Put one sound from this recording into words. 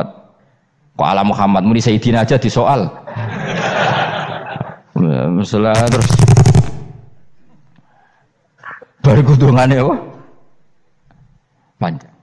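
A man speaks with animation into a microphone, with a slight echo.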